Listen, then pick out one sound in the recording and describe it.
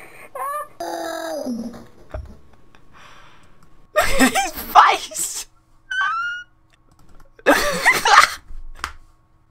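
A boy shouts excitedly.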